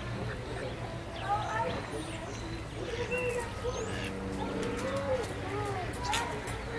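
Ducks quack nearby.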